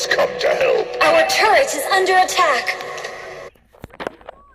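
Electronic game sound effects and music play loudly.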